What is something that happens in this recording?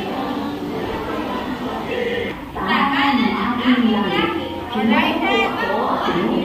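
A woman speaks loudly and cheerfully to children in an echoing room.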